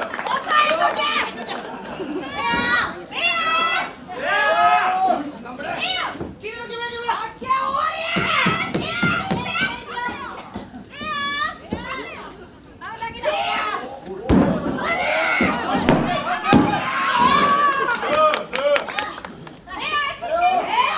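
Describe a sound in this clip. Young women shout and yell loudly in a large echoing hall.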